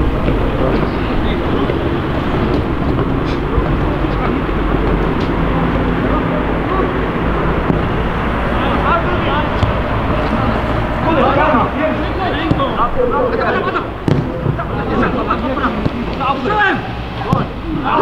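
Wind rumbles steadily in the open air.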